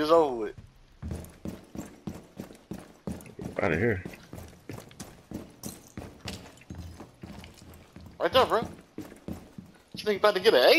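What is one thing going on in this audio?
Footsteps thud quickly across a hard floor.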